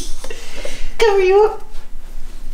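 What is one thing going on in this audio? A baby squeals briefly.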